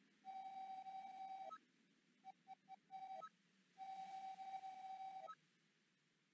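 A game's dialogue text blips out in quick, steady, high electronic beeps.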